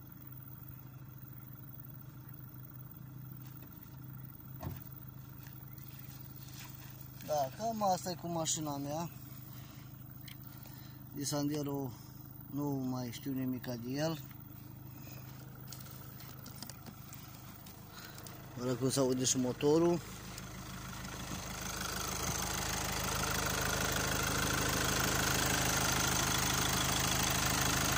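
A car engine idles steadily, growing louder up close near the end.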